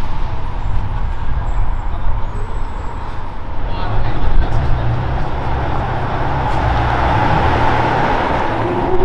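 A sports car engine rumbles deeply at idle.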